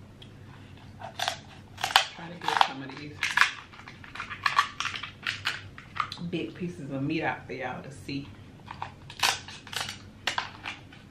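Crab shells crack and crunch close to a microphone.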